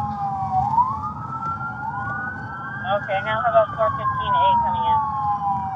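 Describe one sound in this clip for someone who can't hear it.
A siren wails steadily, rising and falling in pitch.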